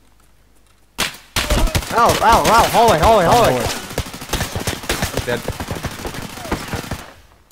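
Rapid, loud gunshots ring out close by.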